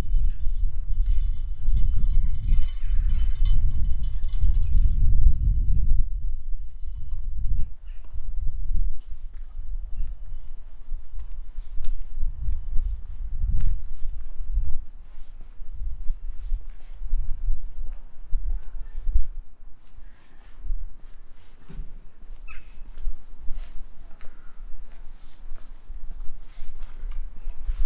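Footsteps walk steadily on paving.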